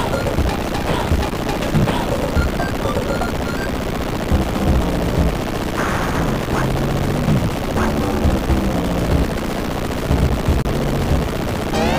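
Upbeat electronic video game music plays steadily.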